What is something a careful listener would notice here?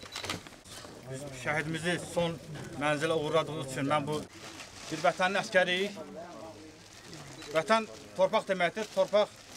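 A man speaks calmly and formally nearby.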